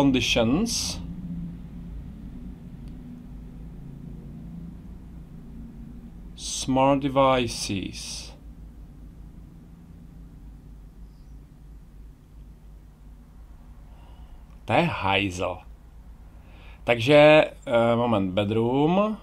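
A middle-aged man speaks calmly into a microphone close by, pausing now and then.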